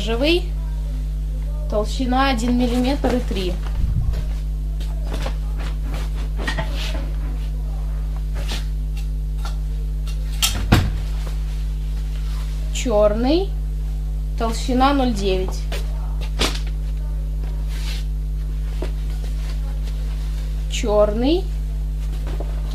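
Cloth rustles and flaps close by.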